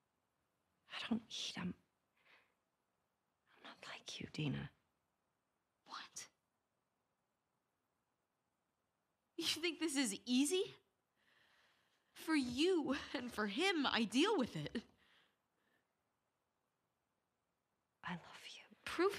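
A young woman answers softly and tearfully, close by.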